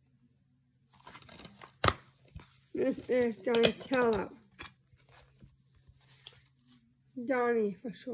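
A plastic case rattles and clicks in hands.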